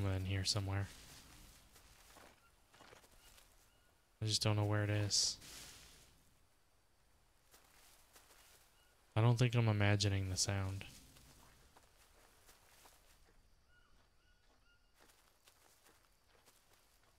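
Footsteps rustle through leaves and undergrowth.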